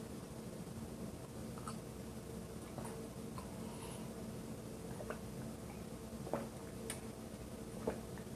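A man sips and swallows a drink.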